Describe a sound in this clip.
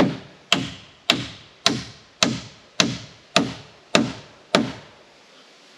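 A hammer strikes a nail into wood again and again in a steady rhythm.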